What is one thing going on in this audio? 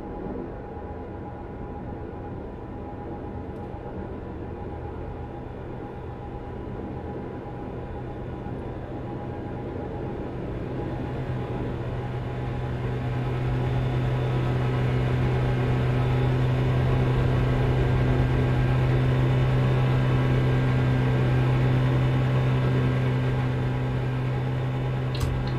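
A truck engine hums steadily and grows louder as it speeds up.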